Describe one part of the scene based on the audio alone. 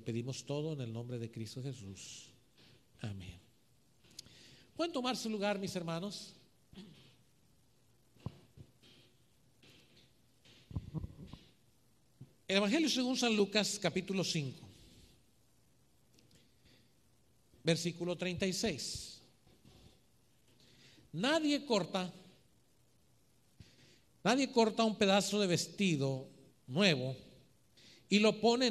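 A man preaches with feeling into a microphone, heard through loudspeakers in an echoing room.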